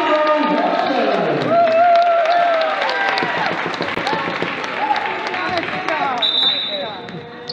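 A crowd cheers and shouts loudly in an echoing gym, then quiets down.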